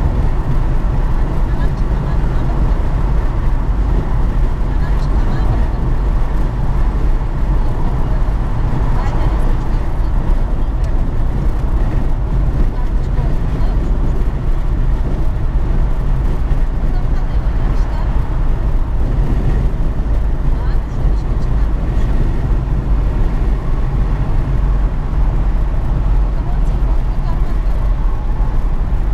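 A car drives steadily along a highway, with a constant low road and engine rumble from inside.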